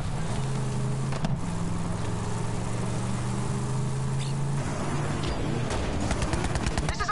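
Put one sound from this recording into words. Engines of small buggies hum steadily.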